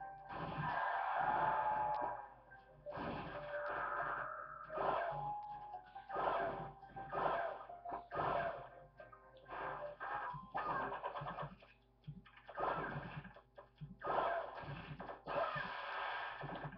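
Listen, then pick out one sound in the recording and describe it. Fighting game sound effects and music play from a television speaker.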